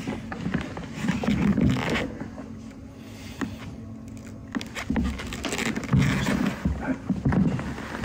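A man talks in a low, hushed voice.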